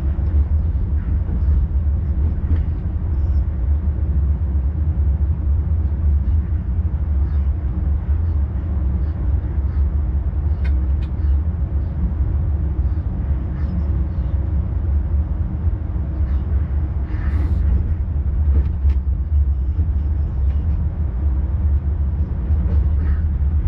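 Train wheels click and clatter over rail joints and switches.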